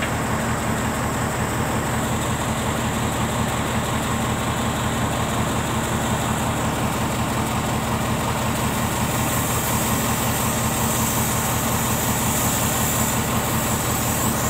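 A diesel hydraulic excavator engine rumbles under load.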